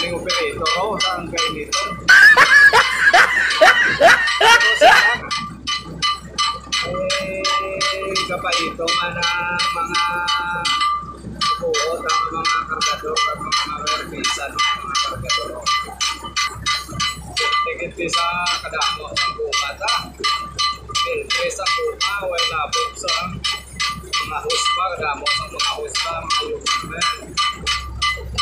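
A ship's engine chugs steadily nearby.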